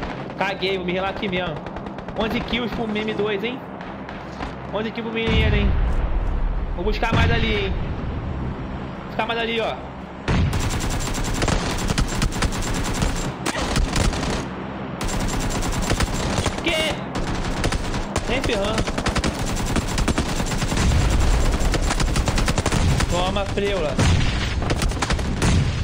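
A young man talks with animation into a headset microphone.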